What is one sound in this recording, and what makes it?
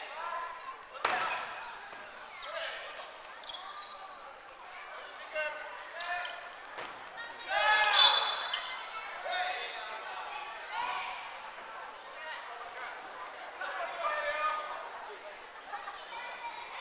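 Many voices shout and cheer in a large echoing hall.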